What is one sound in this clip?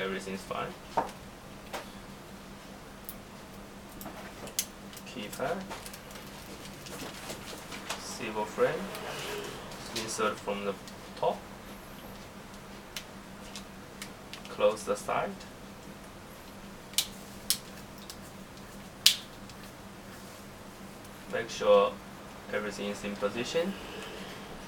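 Small plastic parts click and snap as a phone is taken apart and pressed together.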